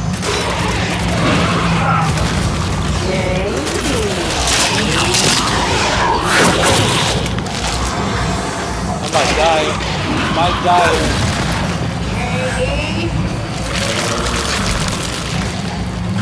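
Lava rumbles low and steadily in a large cave.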